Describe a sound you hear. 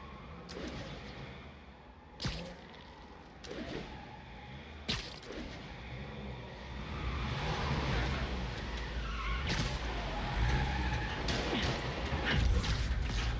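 Wind rushes past during a fast swing and fall.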